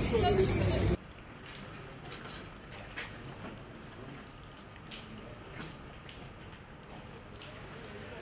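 Paper rustles as a man handles sheets.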